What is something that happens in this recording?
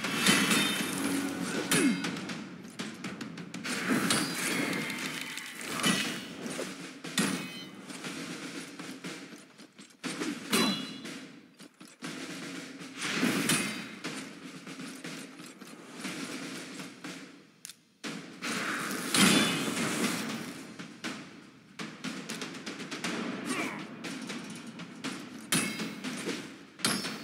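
Swords clash and magic blasts burst during a fantasy battle.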